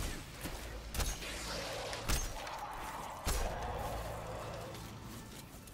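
An explosion bursts with a fiery roar.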